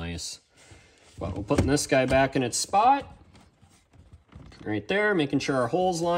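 A car stereo slides into a plastic dashboard slot and clicks into place.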